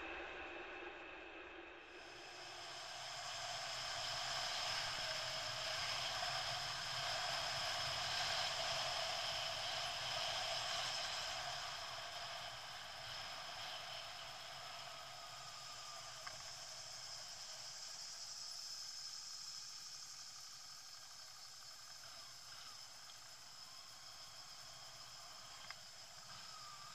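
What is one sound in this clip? Wind rushes steadily past while riding along a road.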